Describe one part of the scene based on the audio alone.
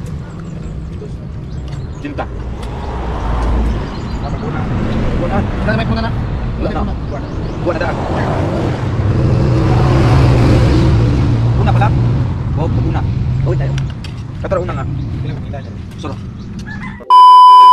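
Young men chat casually close by.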